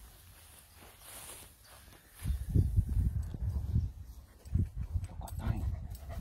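Footsteps swish through long grass.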